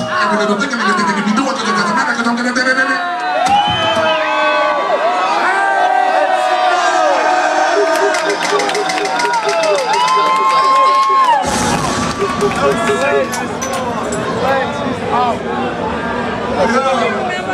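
A man raps loudly through a microphone over a loudspeaker.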